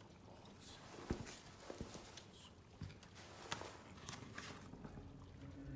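Clothing rustles and small objects tap as a man crouches.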